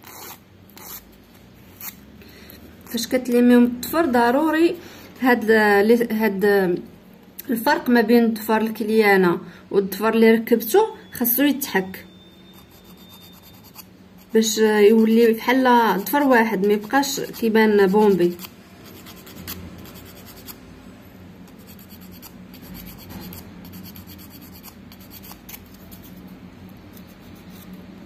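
A nail file rasps softly against a fingernail.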